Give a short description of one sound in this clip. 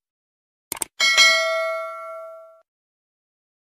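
A bell chimes brightly and rings out.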